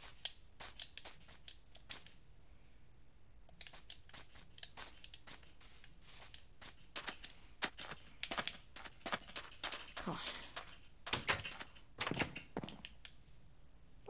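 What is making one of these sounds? Footsteps tread across grass and sand.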